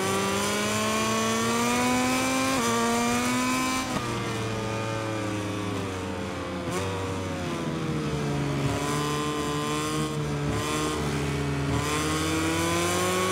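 A motorcycle engine revs high, rising in pitch and dropping with each gear change.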